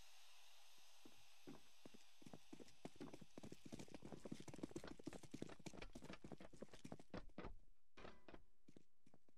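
Footsteps tap on concrete.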